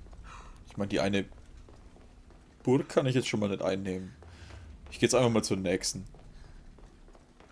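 Footsteps run up stone stairs.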